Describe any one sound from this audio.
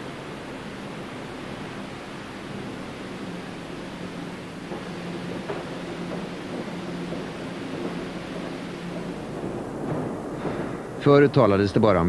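Heavy rolling machinery rumbles and hums steadily.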